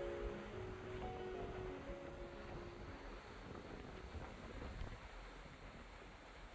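Wind gusts across open water.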